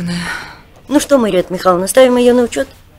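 An older woman speaks calmly.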